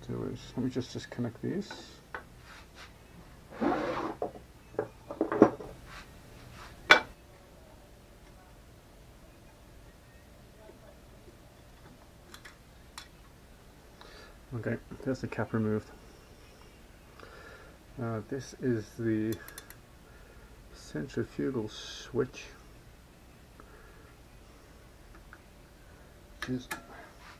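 Hard plastic and metal parts knock and clatter as they are handled.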